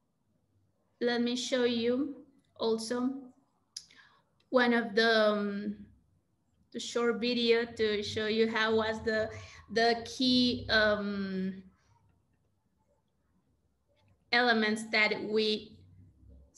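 A young woman speaks warmly over an online call.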